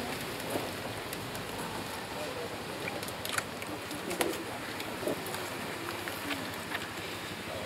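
A man speaks a prayer aloud outdoors.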